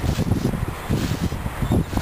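A hand scrapes and digs through crunchy snow.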